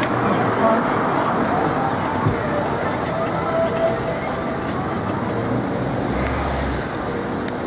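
Traffic drives past on a busy city street.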